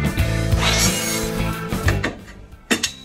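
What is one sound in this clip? A power mitre saw whines loudly as it cuts through metal.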